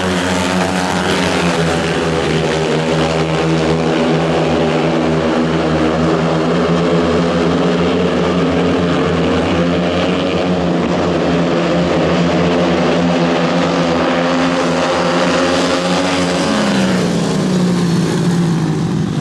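Several motorcycle engines roar loudly as the bikes race around a track.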